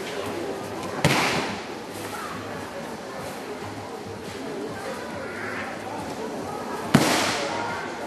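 A body slaps hard onto a padded mat.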